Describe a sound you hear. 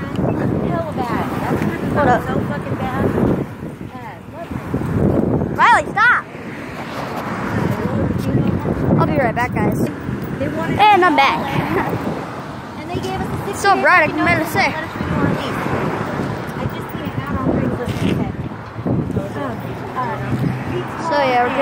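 A boy talks with animation close to a phone microphone.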